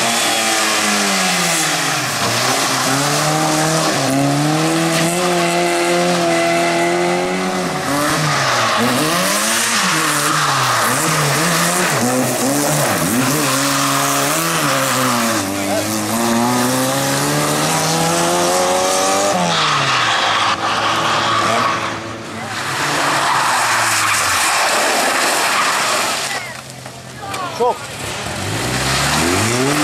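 A car engine revs hard, rising and falling as the gears change.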